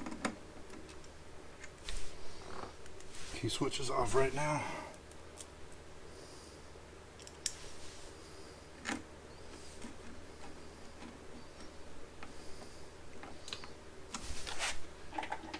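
A screwdriver clicks and scrapes against metal.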